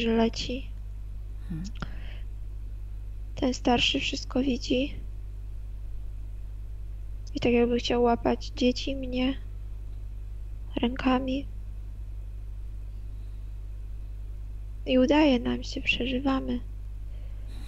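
A young woman speaks in short bursts over an online call.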